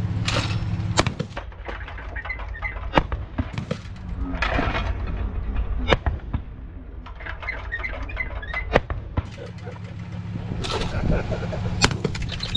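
Shotgun blasts ring out outdoors, sharp and echoing.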